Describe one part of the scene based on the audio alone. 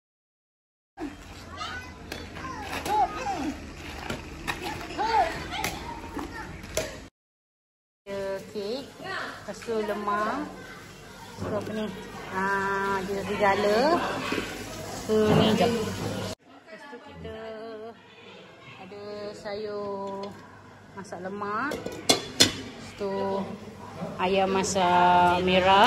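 Women talk and laugh nearby with animation.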